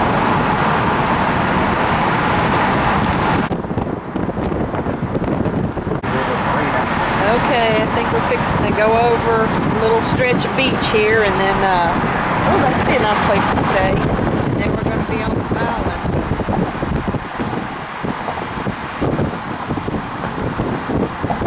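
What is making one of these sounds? Wind roars past an open car driving fast.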